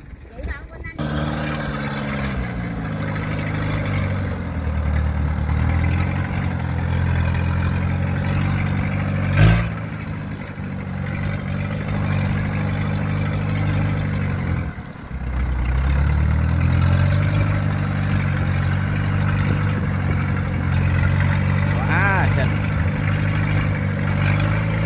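A tracked carrier's engine chugs as the carrier drives along, its pitch rising and falling.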